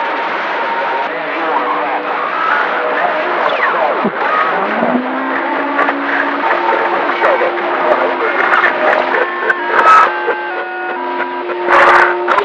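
A shortwave radio receiver hisses with static, whistling tones and faint warbling signals through its loudspeaker.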